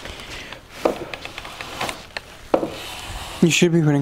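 A hand plane shaves wood with a rasping stroke.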